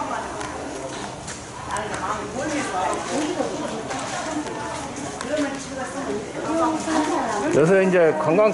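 Voices of people murmur in the background.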